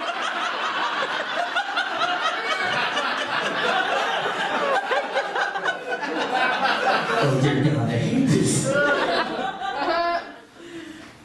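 A young man talks with animation to an audience in a small hall.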